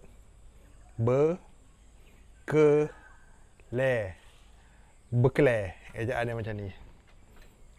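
A man speaks calmly close to a microphone, in short bursts with pauses.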